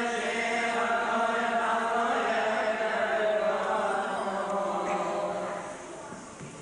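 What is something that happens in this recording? A group of young men chant together in a reverberant hall.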